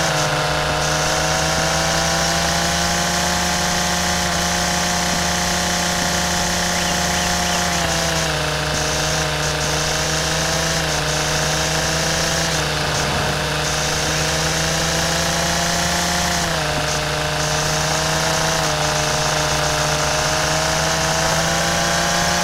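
A string trimmer engine whines steadily, its pitch dipping and rising slightly.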